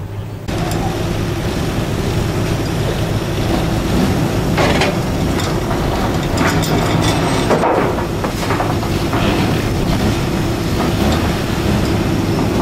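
A crane motor hums steadily.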